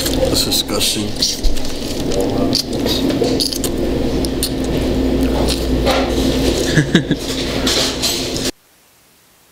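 Young men talk and laugh nearby.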